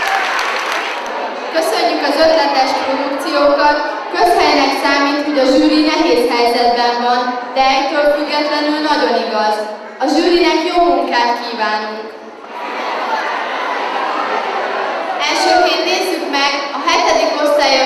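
A young girl reads out into a microphone in an echoing hall.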